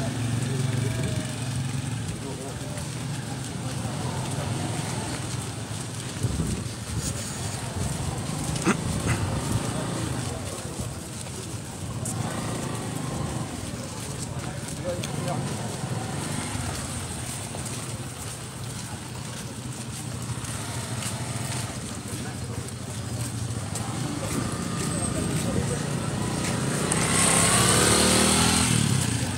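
Footsteps shuffle on a dusty road.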